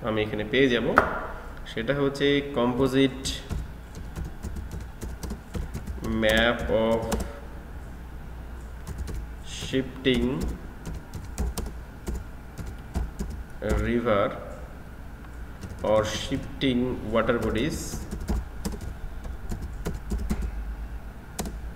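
Computer keys click quickly as someone types.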